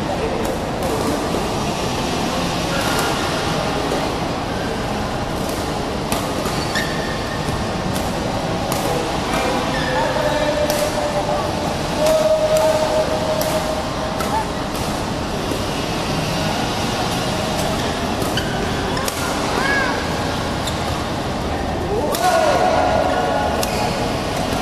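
Shuttlecocks are struck with sharp pops of rackets.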